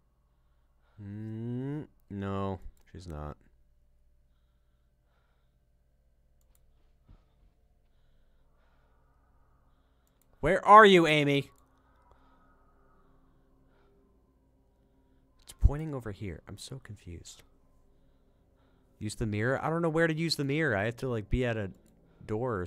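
A young man talks into a microphone in short bursts, with animation.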